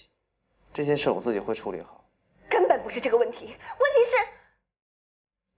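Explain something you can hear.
A young woman speaks close by in a pained, emotional voice.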